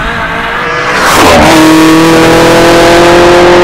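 A car rushes past close by with a loud whoosh.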